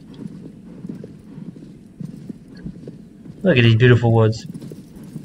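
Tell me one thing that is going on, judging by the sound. A horse's hooves thud steadily on a soft forest path.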